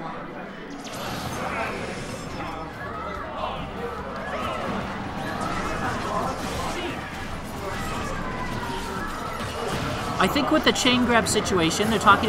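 Video game fighting sounds and music play.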